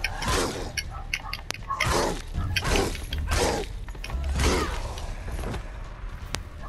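A spear whooshes through the air in quick swings.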